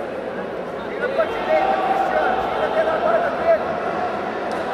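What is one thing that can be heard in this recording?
Spectators shout loudly in bursts.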